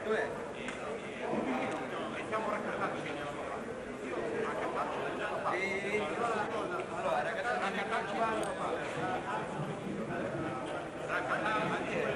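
A crowd of adult spectators chatters indoors, with many voices overlapping.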